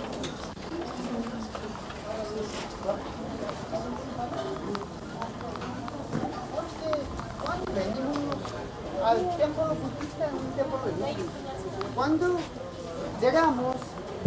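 Men and women chat nearby in a busy open-air crowd.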